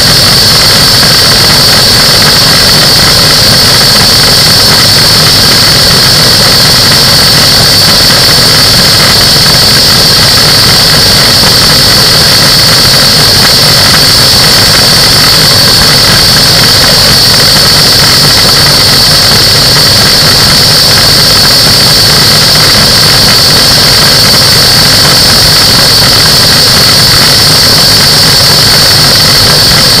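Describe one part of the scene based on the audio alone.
Wind rushes hard past in flight.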